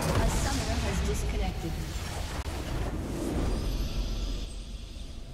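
A huge structure explodes with a deep rumbling boom.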